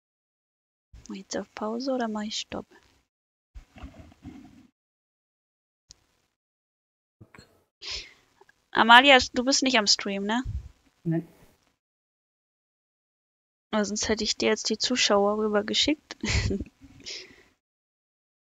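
A young woman speaks with animation through a close microphone.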